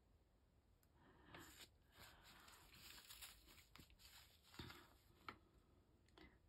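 A paper towel rustles and crinkles.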